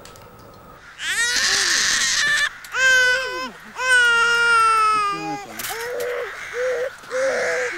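A baby cries loudly.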